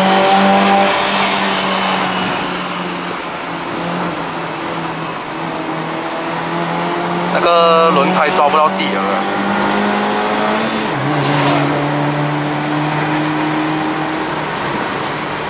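Tyres roll on a road with a steady rushing noise.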